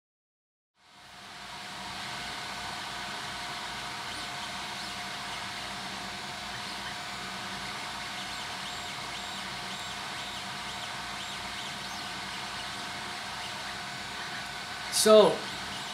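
A 3D printer's motors whir and hum steadily.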